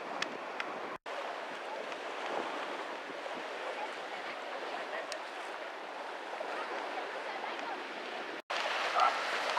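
A man wades through shallow water, splashing.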